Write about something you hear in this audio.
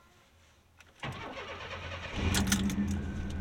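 A car engine cranks and starts.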